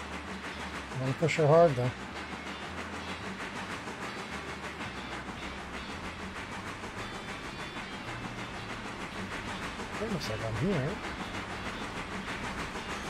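A steam locomotive chugs steadily along the track.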